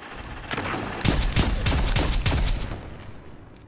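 Heavy rifle shots boom one after another.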